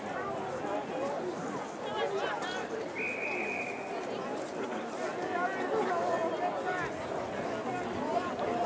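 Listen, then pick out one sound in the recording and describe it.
Young men shout at each other on an open field.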